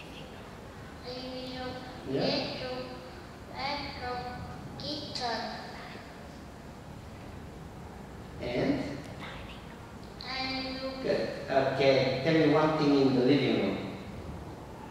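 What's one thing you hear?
A man speaks calmly and clearly into a microphone nearby.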